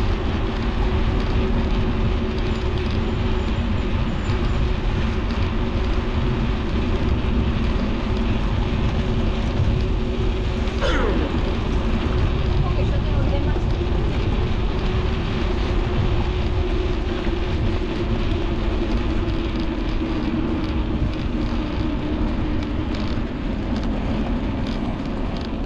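A bicycle whirs steadily along a smooth path.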